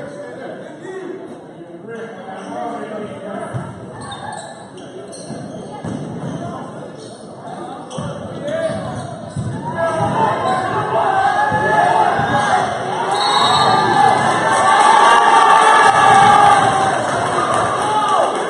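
A crowd of spectators talks and cheers in a large echoing gym, growing louder.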